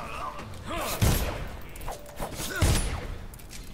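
A blade slashes with heavy thuds.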